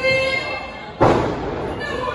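A body slams heavily onto a wrestling ring.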